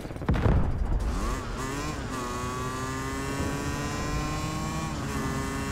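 A motorcycle engine revs up, then drones steadily at speed.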